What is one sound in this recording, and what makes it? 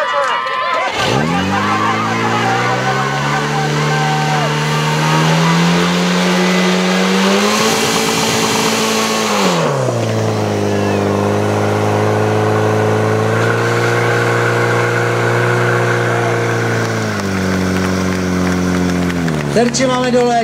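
A pump engine starts and roars steadily, its pitch rising and falling as it revs.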